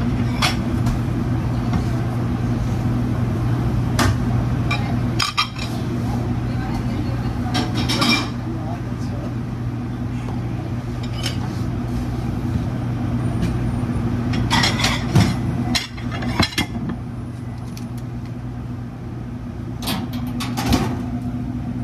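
Plates and dishes clatter on a hard counter.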